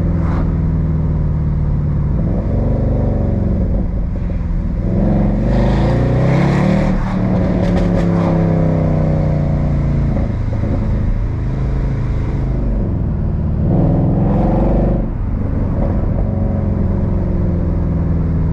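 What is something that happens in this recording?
A car engine hums and revs up and down as the car drives.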